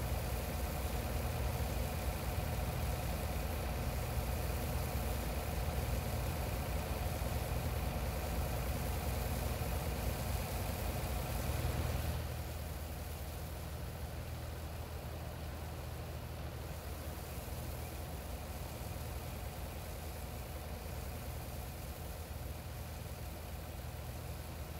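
Grain pours with a rushing hiss into a trailer.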